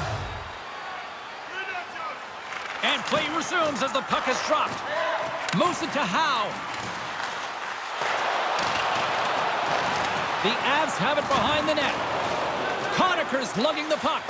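A large arena crowd murmurs and cheers.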